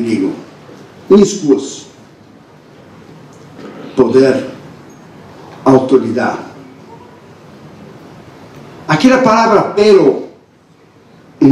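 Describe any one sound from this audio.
A man preaches with emphasis through a microphone in a large echoing hall, pausing between phrases.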